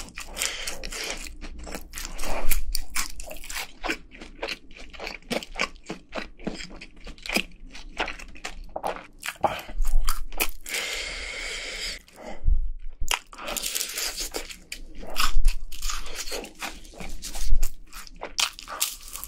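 Crispy fried chicken crunches loudly close to a microphone.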